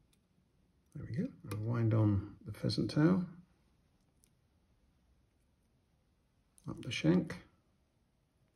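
A man speaks calmly close by, in short phrases.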